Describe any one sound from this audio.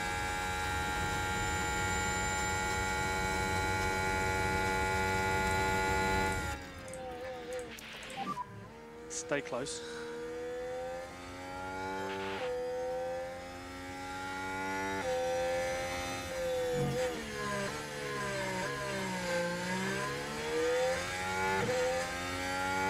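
A racing car engine whines at high revs, rising and falling in pitch as it shifts gears.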